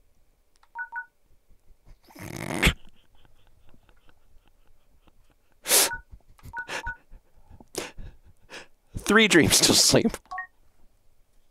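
A game menu beeps softly as a selection moves.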